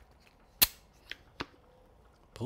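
A plastic shaker lid clicks.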